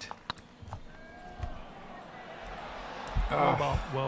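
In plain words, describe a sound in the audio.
A golf putter taps a ball with a soft click.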